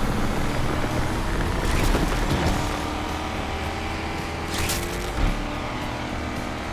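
Wind rushes past a speeding car.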